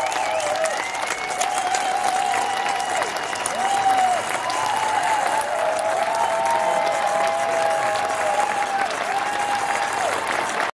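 A large crowd claps and cheers outdoors.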